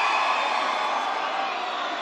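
A large crowd cheers in a big hall.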